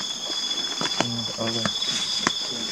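A man speaks in a low voice nearby.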